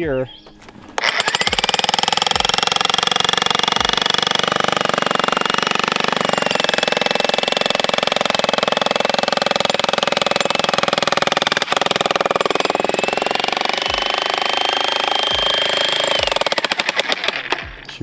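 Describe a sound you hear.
A powered rock drill hammers loudly and steadily into stone.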